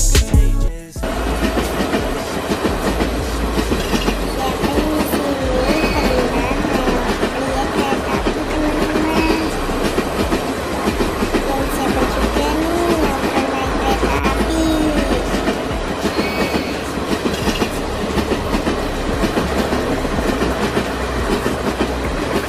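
A passenger train rumbles past, its wheels clattering over the rails.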